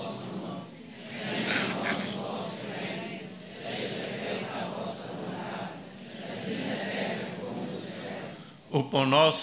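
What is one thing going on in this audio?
An elderly man reads aloud steadily through a microphone and loudspeakers.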